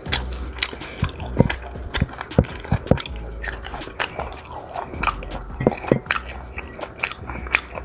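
A plastic spoon clinks and scrapes against a bowl.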